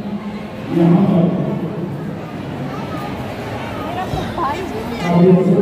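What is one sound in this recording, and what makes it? A crowd of people talks and murmurs nearby, in a busy echoing hall.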